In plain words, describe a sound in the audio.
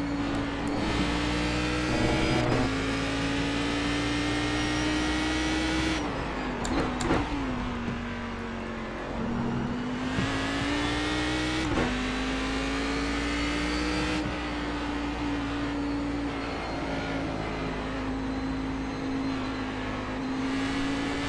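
A racing car engine roars steadily, rising and falling in pitch as gears shift.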